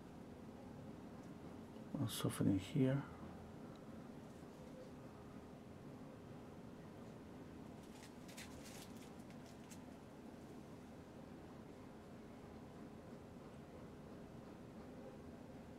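A paintbrush brushes softly across canvas.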